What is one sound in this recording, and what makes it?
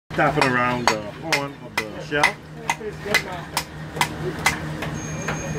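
A hammer knocks sharply on a hard shell, again and again.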